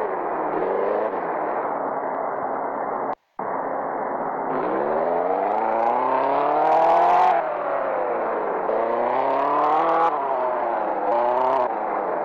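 A car engine hums and revs up and down as the car drives.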